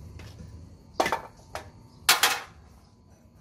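A metal tool clinks against a concrete floor.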